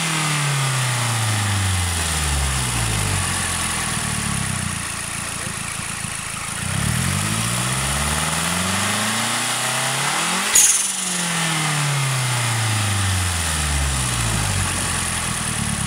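A car engine revs up and down repeatedly, its pitch rising and falling.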